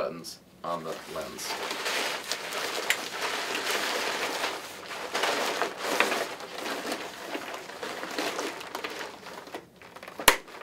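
Plastic fabric rustles and crinkles as it is handled.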